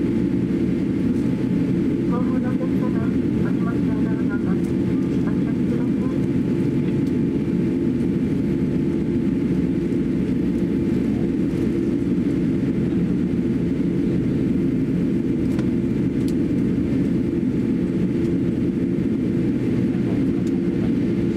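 Jet engines roar steadily inside an airplane cabin.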